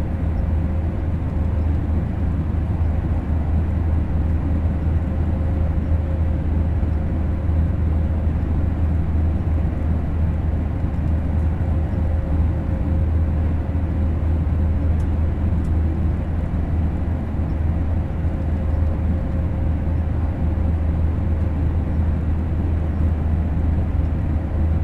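A train rumbles steadily along the track, heard from inside the cab.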